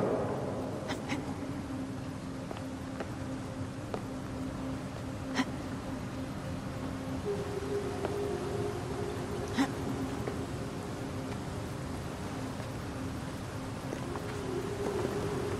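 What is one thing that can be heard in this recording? A climber grabs onto stone ledges with soft thuds.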